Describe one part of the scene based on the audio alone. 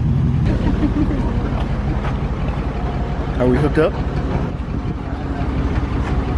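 A truck engine idles with a steady low rumble.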